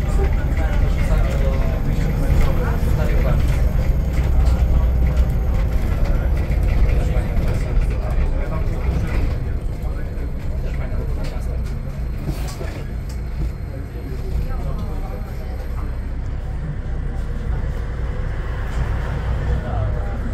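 Tyres roll over the road with a low rattling drone.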